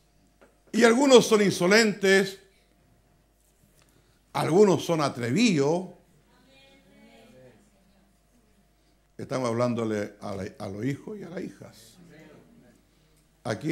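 An elderly man preaches with animation through a microphone, pausing between phrases.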